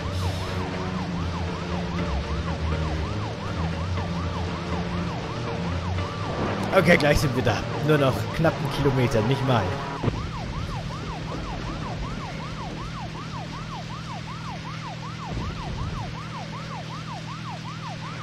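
A police siren wails over and over.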